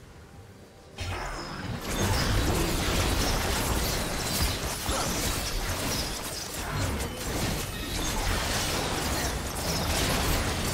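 Game spell effects whoosh and crackle as characters fight a large monster.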